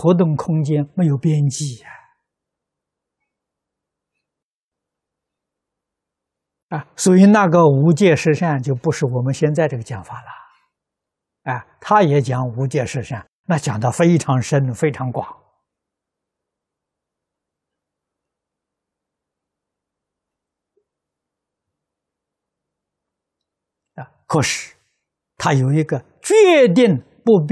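An elderly man speaks calmly and with long pauses, close to a microphone.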